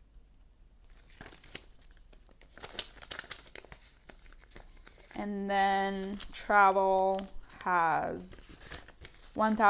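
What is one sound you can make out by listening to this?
Paper banknotes rustle and crinkle as hands leaf through them.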